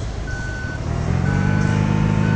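A bus engine revs up.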